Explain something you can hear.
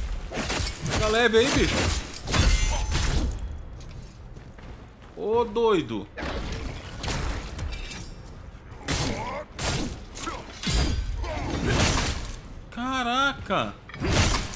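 A man cries out in pain.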